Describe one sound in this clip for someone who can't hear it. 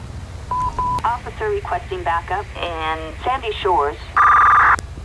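A man speaks briskly over a police radio.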